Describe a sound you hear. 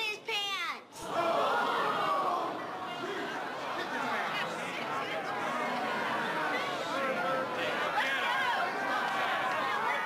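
An elderly man shouts in shock.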